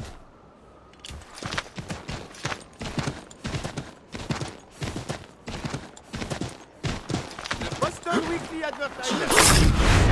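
Horse hooves pound rapidly on snow at a gallop.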